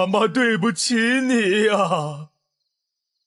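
A young man sobs and cries out in anguish.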